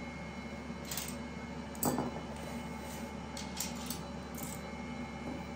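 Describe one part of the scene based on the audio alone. Metal cookie cutters clink against each other.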